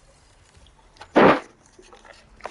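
A heavy mechanism hisses and clunks as a container opens.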